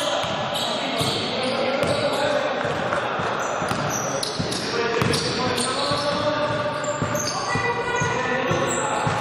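Sneakers squeak sharply on a hard floor in an echoing hall.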